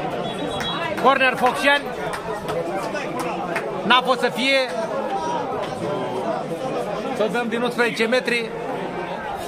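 A man close by shouts loudly in short bursts.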